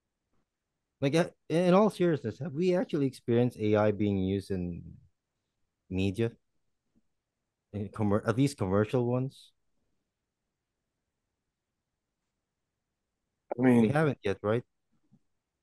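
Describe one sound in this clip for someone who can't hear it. A man speaks calmly through an online call, in short bursts with pauses.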